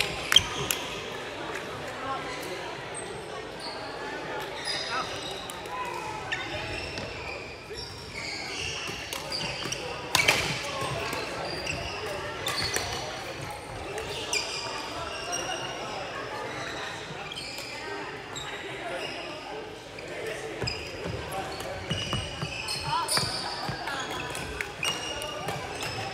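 Rackets strike a shuttlecock in quick rallies in a large echoing hall.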